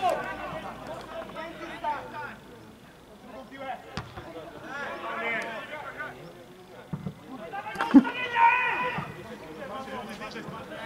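Men shout to each other from a distance outdoors.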